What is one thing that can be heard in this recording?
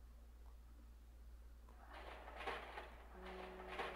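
Heavy metal gates creak open.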